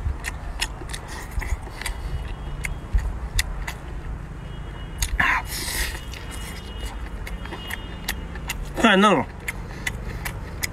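A man chews noisily with a wet, smacking sound.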